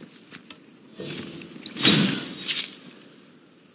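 An axe is pulled free with a swishing, metallic scrape.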